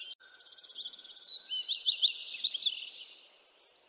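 A hawk calls with sharp, high cries.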